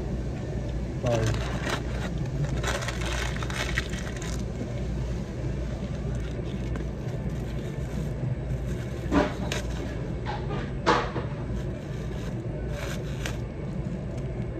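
A plastic wrapper crinkles close by.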